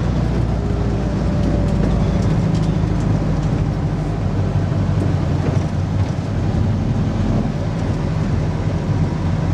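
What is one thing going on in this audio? A vehicle body rattles and vibrates over the road.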